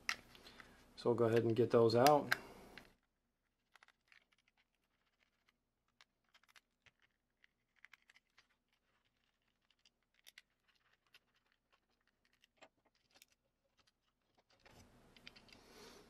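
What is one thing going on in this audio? Plastic parts click and snap as a casing is pried open.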